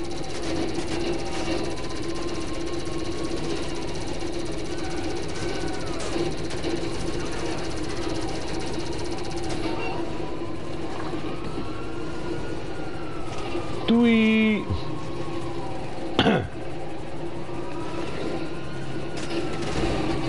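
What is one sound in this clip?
A small vehicle's engine hums steadily as it drives.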